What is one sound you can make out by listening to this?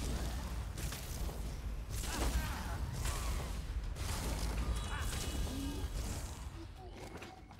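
Magic spells blast and crackle loudly in a video game.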